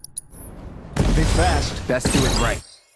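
A sword swishes and strikes in a fast fight.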